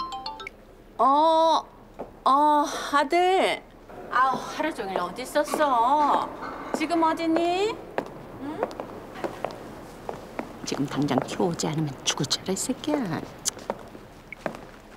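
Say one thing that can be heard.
A middle-aged woman speaks excitedly into a phone nearby.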